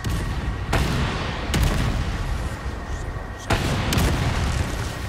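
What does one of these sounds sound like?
A gun fires loud shots that echo in a large hall.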